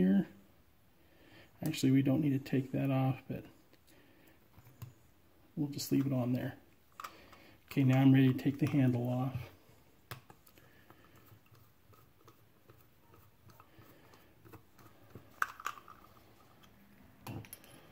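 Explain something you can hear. Small metal parts click and rattle as they are handled.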